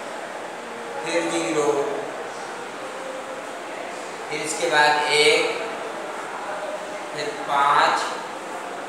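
A middle-aged man speaks calmly, explaining, close by.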